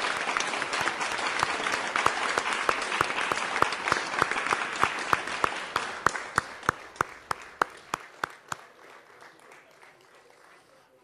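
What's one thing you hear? A crowd applauds in a large hall, then the clapping thins out and dies away.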